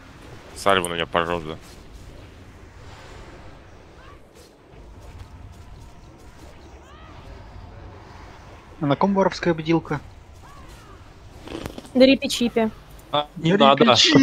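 Magic spells whoosh and crackle in battle.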